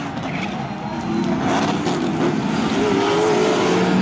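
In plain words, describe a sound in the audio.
Cars crash and scrape against each other.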